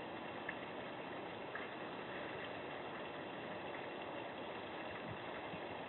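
A small waterfall splashes steadily into a pond outdoors.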